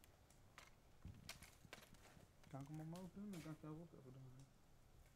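Broken glass clinks and crunches.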